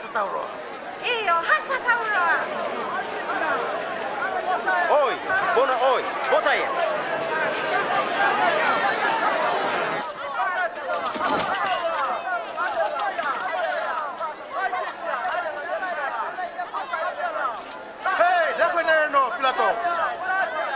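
A crowd of men shouts and clamours loudly.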